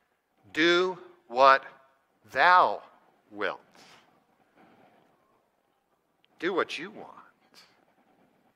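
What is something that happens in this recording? A man preaches with animation through a microphone, pausing between phrases.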